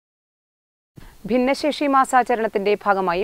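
A woman reads out clearly through a microphone.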